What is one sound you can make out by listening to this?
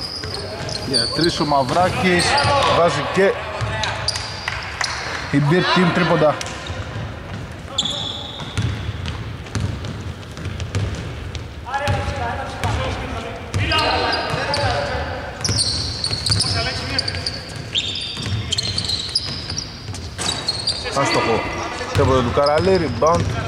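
Players shout to each other across the court, with their voices echoing.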